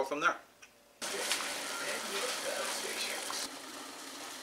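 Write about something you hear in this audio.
Water boils and bubbles in a pot.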